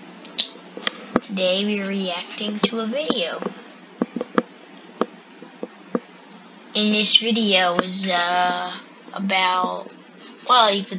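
A young boy speaks close to the microphone with animation.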